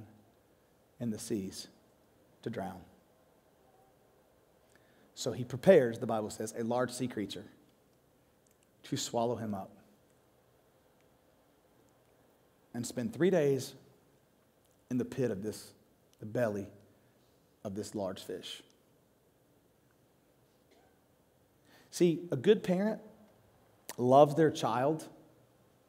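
A man speaks calmly through a microphone in a large hall, pausing often between phrases.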